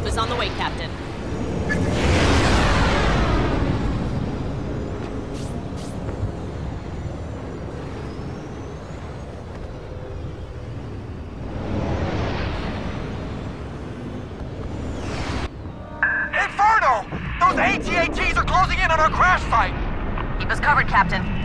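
A starfighter's engines roar and whoosh past.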